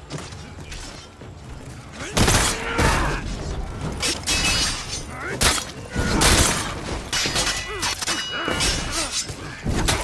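Swords clash and strike repeatedly in a battle.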